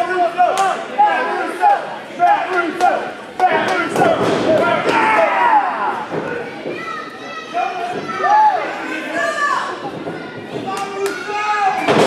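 Bodies slam onto a wrestling ring mat with loud thuds.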